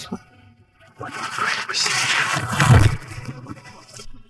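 Bedsheets rustle as bodies drop onto a bed.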